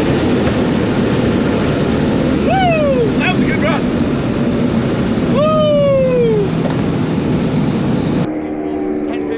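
A car engine roars loudly from inside the cabin.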